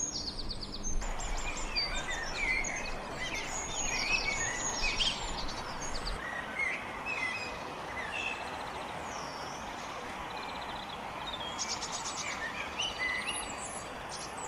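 A bird sings in varied, whistling phrases from a tree nearby.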